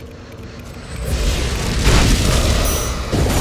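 A magic beam crackles and hums.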